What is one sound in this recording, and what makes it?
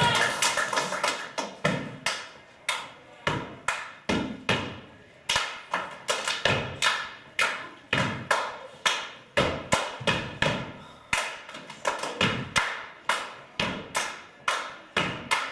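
Feet stomp hard on a stage in a rhythmic pattern, echoing through a large hall.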